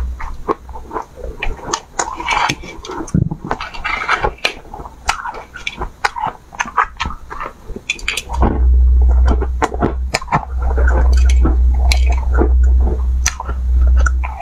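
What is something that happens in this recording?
Ice crackles and clinks as a young woman handles it.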